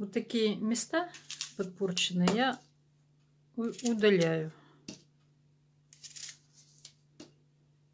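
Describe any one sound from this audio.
A knife cuts through apples.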